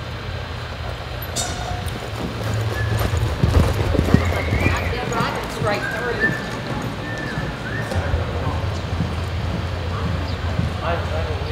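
A horse's hooves thud on soft dirt as it lopes along.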